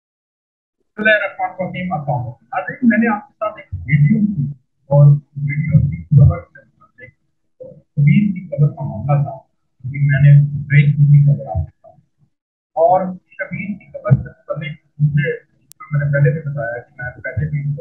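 A man speaks steadily over an online call.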